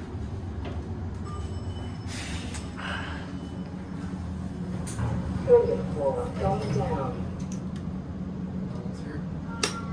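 An elevator hums with a low, steady drone.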